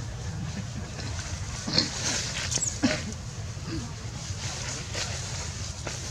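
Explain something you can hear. Dry leaves rustle and crackle as a small monkey moves over them.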